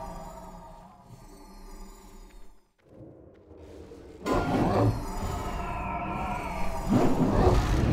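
Spell effects crackle and boom in a fantasy battle game.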